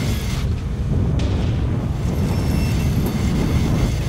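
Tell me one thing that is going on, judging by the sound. A loud explosion bursts nearby.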